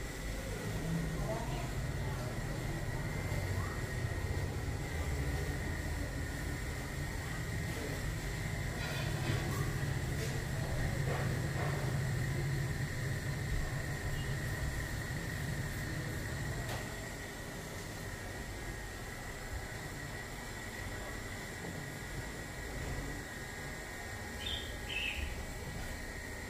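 A razor scrapes softly across stubble on a face.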